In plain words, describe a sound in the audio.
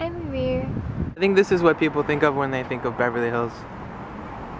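A young woman talks close to the microphone.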